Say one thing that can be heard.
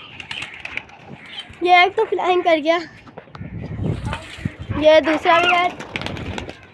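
Chickens cluck and call loudly nearby.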